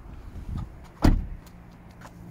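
A car door latch clicks and the door swings open.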